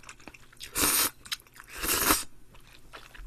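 A young man slurps noodles loudly close to a microphone.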